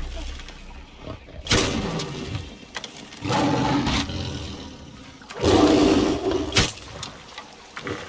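A lion growls and roars up close.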